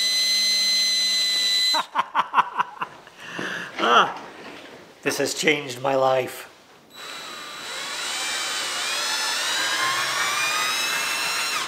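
A power drill whines as it bores.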